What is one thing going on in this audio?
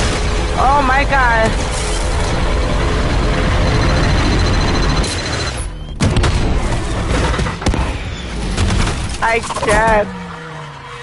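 A young woman exclaims loudly into a microphone.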